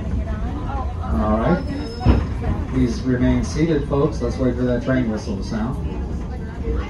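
A man talks nearby, outdoors.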